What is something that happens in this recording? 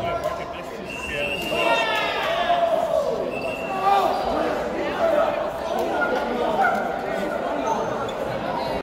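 Young men and boys cheer and shout in a large echoing gym.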